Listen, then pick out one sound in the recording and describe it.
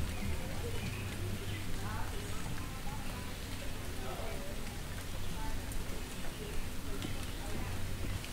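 Distant voices of men and women chatter outdoors in a street.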